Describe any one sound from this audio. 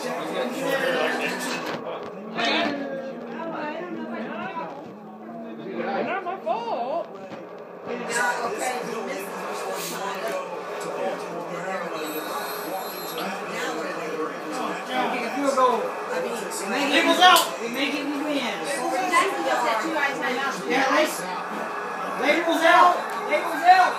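A television plays a football broadcast with a commentator talking.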